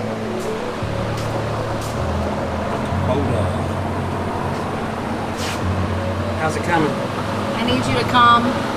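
A tractor engine idles with a steady low hum.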